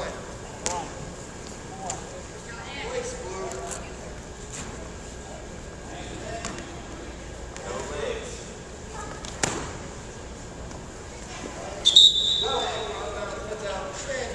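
A man calls out to wrestlers in an echoing gym.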